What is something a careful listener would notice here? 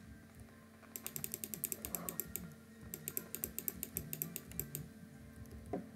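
Rapid sharp clicks and smashes of objects being broken ring out in quick bursts.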